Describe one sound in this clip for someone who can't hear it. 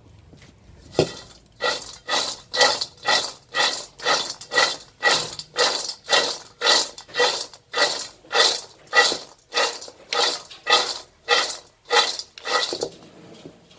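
Nuts rattle and clatter as they are tossed in a metal pan in a quick, steady rhythm.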